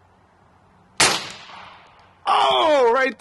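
A rifle fires a single loud shot that echoes outdoors.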